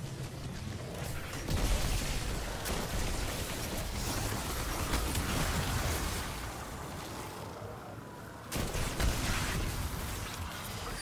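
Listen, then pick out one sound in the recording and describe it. Electric crackling bursts from a game.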